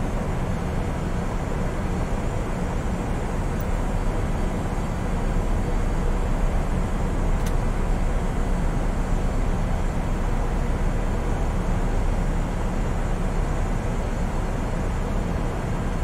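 A steady, low jet engine hum fills a cockpit.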